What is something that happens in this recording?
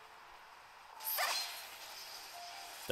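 A bright magical whoosh bursts out suddenly, then fades.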